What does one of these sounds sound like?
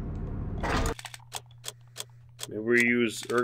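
Short clicks tick in quick succession.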